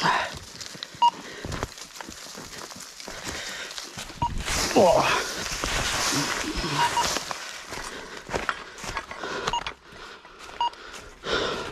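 A metal detector gives short beeps.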